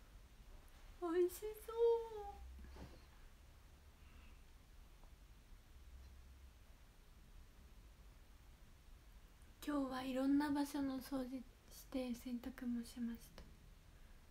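A young woman speaks softly and close by in short bursts.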